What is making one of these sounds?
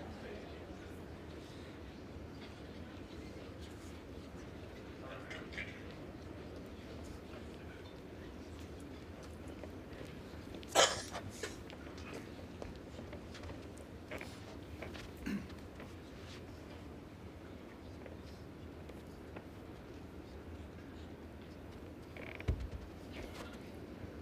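A large indoor crowd murmurs quietly in an echoing hall.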